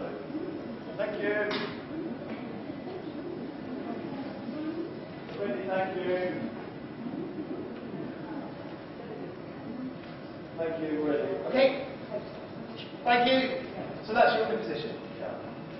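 Young girls speak in turn, heard from the back of an echoing hall.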